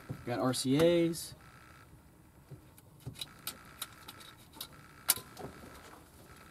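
Plastic parts click and rattle as wires are handled.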